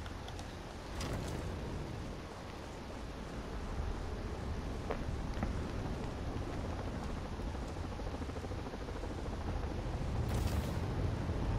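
Wind rushes loudly past a gliding cape.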